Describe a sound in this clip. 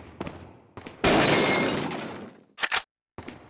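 Glass shatters under a knife blow.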